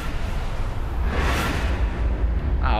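A puff of smoke bursts with a loud whoosh.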